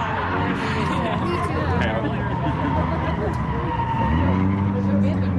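Tyres squeal as a car spins its wheels in a burnout.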